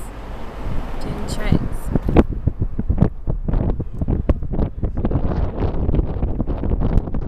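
Wind blows outdoors, rumbling against the microphone.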